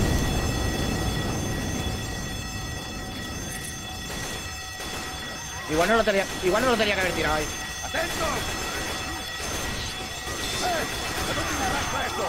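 A fire roars and crackles.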